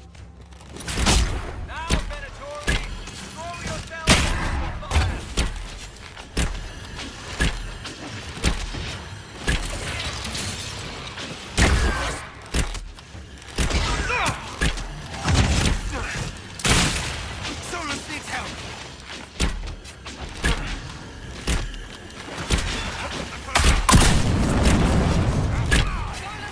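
Swords clash and spells burst with sharp hits over and over.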